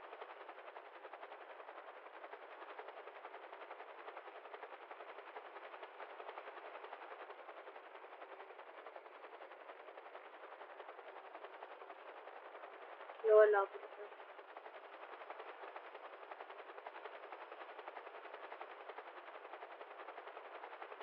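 A helicopter's rotor chops steadily and fast.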